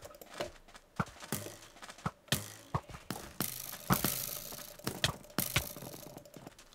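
Sword blows land with sharp, quick thuds.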